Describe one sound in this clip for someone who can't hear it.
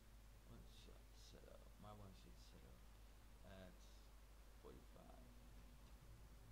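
A man speaks quietly and briefly, close to a microphone.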